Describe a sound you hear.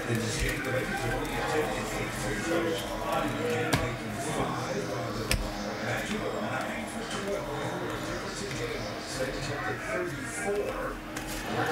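Trading cards slide and shuffle in a man's hands.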